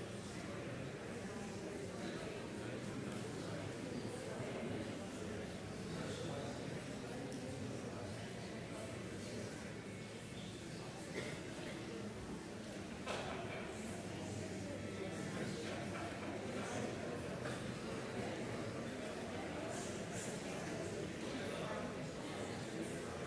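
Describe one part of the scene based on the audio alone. An audience murmurs and chatters quietly in a large echoing hall.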